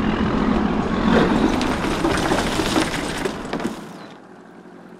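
Ice crashes and rattles as it pours from a crate.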